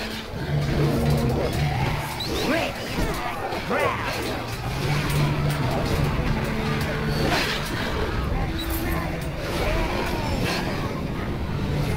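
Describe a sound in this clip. Weapons clash and thud in a fast melee fight.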